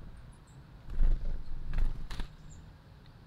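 A small bird's wings flutter briefly close by.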